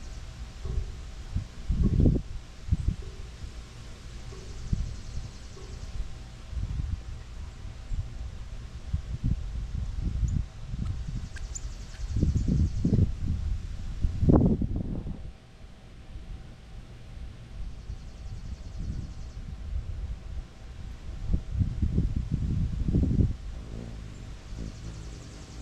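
Wind gusts outdoors, rumbling against the microphone.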